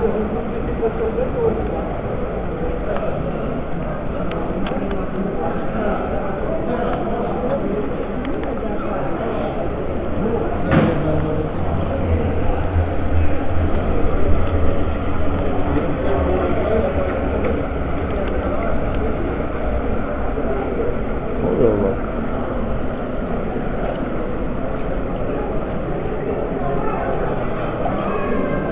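Water laps and ripples across a flooded street outdoors.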